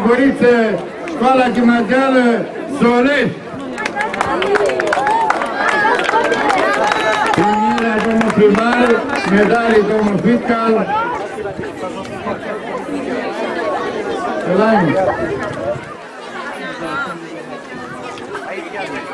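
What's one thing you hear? A crowd of children chatters in the background.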